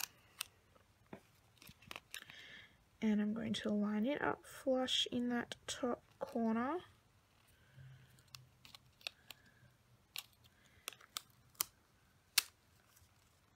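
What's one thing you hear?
A sticker peels off with a soft crackle.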